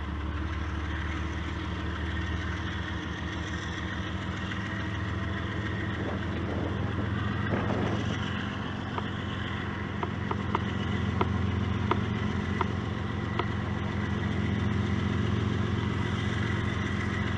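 A freight train's diesel engines rumble steadily and grow louder as the train approaches.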